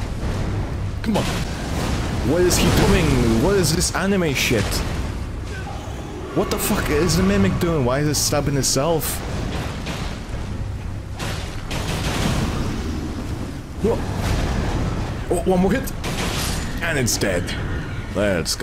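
Heavy metal blades clash and strike with sharp thuds.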